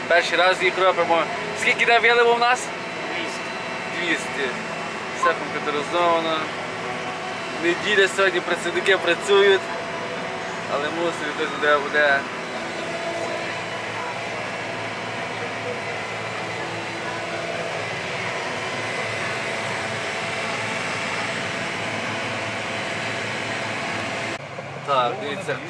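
A tractor engine hums steadily inside a cab.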